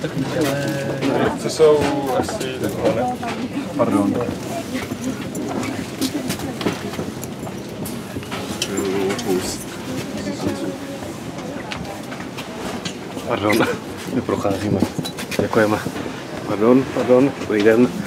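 A train rumbles steadily along its track.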